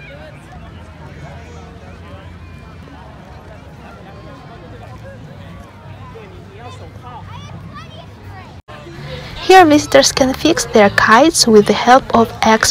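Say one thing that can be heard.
A crowd of women and children chatter nearby.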